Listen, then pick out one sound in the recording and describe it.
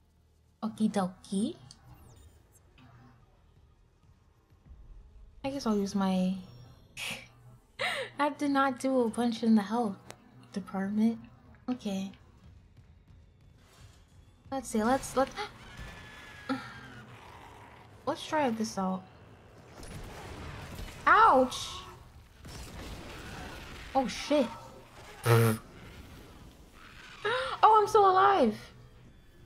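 A young woman talks with animation into a close microphone.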